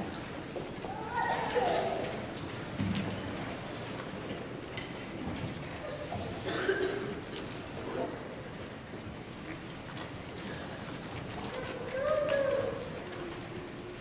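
A woman speaks faintly from a distance in a large hall.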